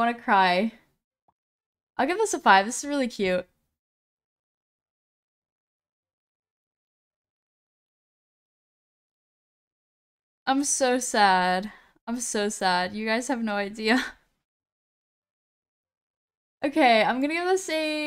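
A young woman talks animatedly into a close microphone, with long pauses.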